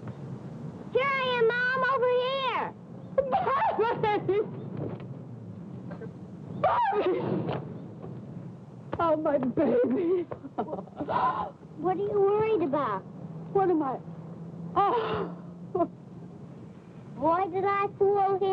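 A woman speaks with emotion, close by.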